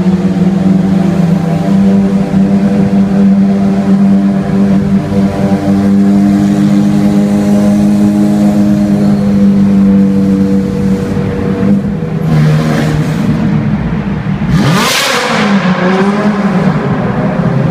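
A sports car engine roars loudly nearby, echoing in a tunnel.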